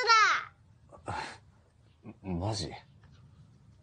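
A young boy giggles.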